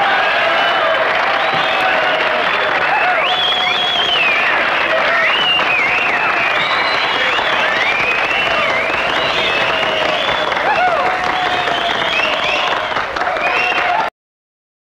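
A crowd of men and women talk and shout over each other in a noisy room.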